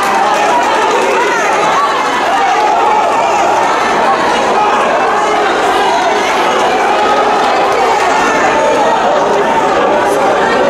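A crowd of spectators chatters and cheers loudly in a large echoing hall.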